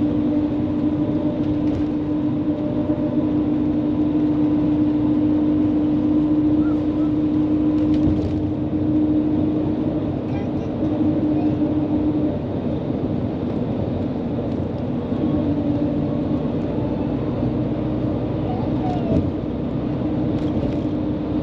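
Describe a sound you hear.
A steady low rumble and hum of a moving vehicle, heard from inside the cabin.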